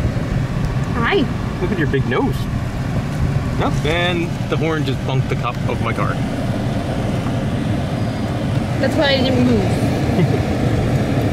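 A young woman talks and laughs excitedly close by.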